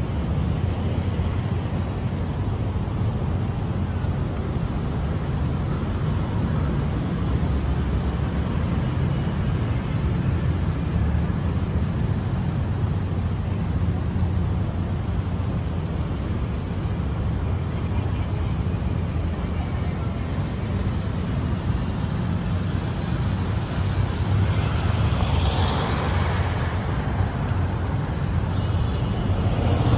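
Traffic rumbles steadily on a nearby city street outdoors.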